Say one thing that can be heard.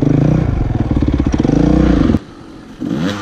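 A motorbike engine idles loudly close by.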